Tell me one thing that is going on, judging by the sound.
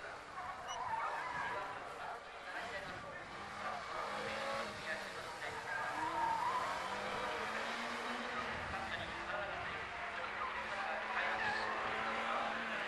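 Tyres squeal on the track.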